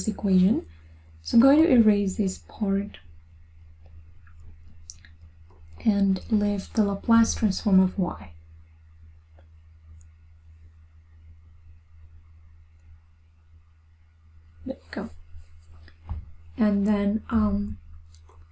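A young woman speaks calmly into a close microphone, explaining in short bursts with pauses.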